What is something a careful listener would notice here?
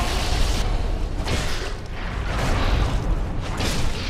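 A sword slashes and strikes a creature.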